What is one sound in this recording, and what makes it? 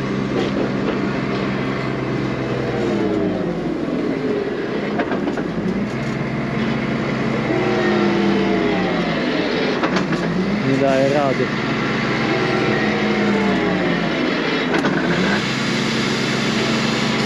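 A forage wagon's machinery rattles and clatters.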